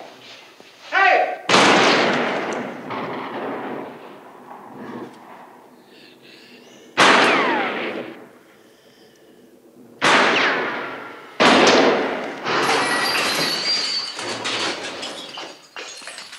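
A film soundtrack plays through loudspeakers, with loud sudden bursts.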